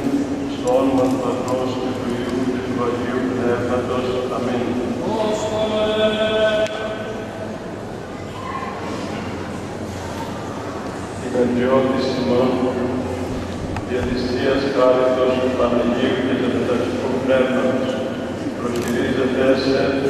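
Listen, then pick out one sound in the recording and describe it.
Men's voices chant together in a large echoing hall.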